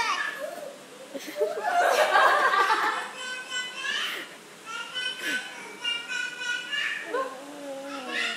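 A baby babbles and coos nearby.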